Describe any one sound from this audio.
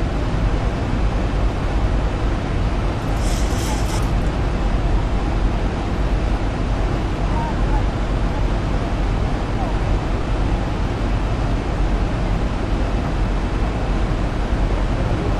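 A jet airliner's engines roar steadily in flight.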